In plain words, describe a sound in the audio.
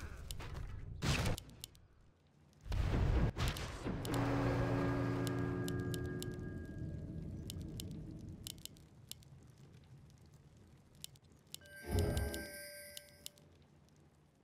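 Magical game effects whoosh and chime with a ringing tail.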